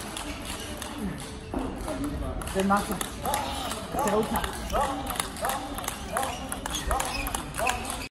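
Table tennis balls click off paddles and tables in a large echoing hall.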